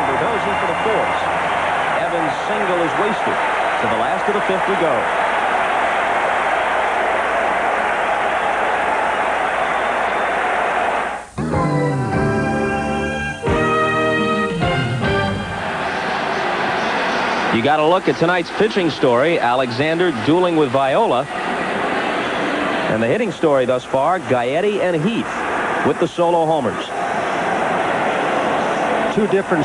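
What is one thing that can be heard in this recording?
A large crowd murmurs and cheers in a big echoing stadium.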